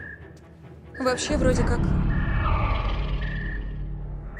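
A woman speaks in a low, tense voice.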